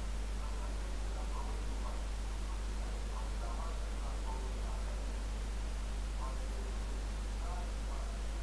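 A low electrical hum drones steadily.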